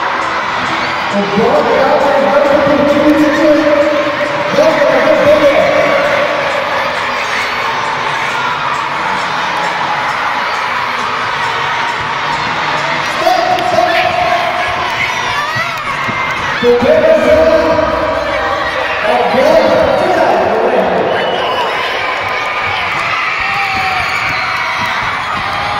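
A crowd of children shouts and cheers in a large echoing hall.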